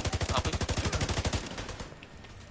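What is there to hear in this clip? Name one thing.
A rifle fires in a rapid burst.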